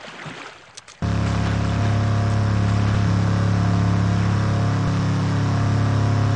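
A loud motor drones steadily.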